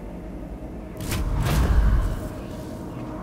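A deep blast booms and rumbles.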